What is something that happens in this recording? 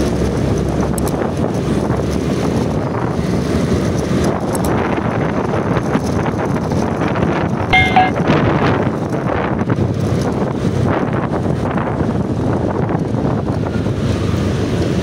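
Wind rushes past a microphone outdoors.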